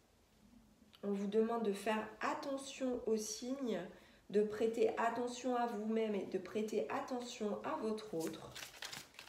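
A woman speaks calmly and steadily nearby.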